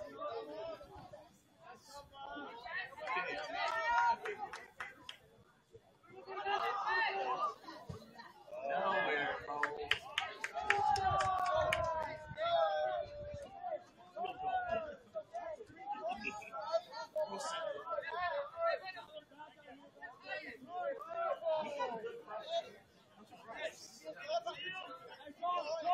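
Young players shout and call out to one another across an open outdoor field.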